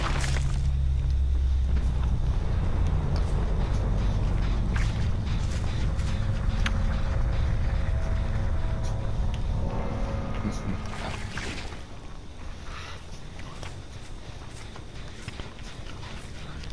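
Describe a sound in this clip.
Footsteps run through dry grass.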